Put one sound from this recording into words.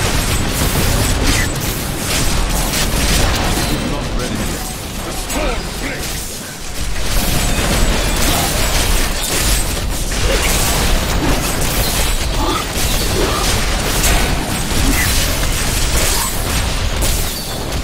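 Spells crackle and explode in rapid bursts.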